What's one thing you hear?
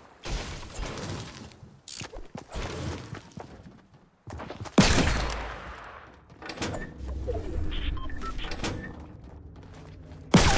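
A pickaxe strikes wood and metal with sharp knocks.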